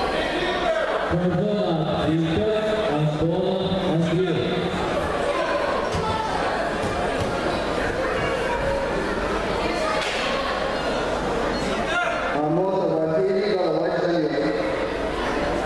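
Spectators shout encouragement in a large echoing hall.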